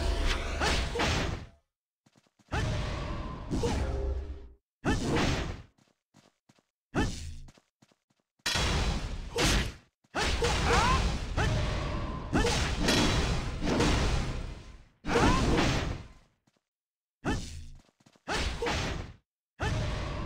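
Spell effects whoosh and crackle in bursts as game characters fight.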